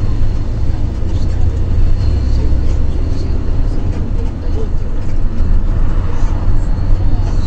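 A vehicle's engine rumbles steadily from inside as it drives along a road.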